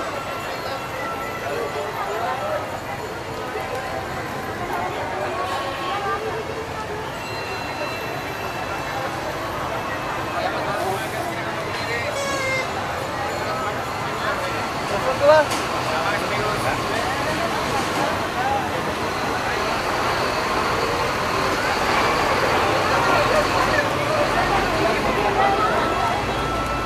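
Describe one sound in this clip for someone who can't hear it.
Truck engines rumble slowly past.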